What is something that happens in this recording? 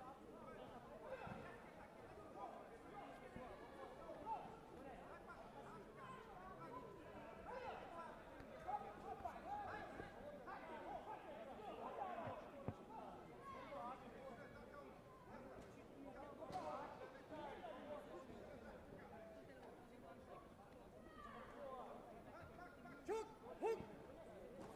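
Many people talk at once across a large echoing hall.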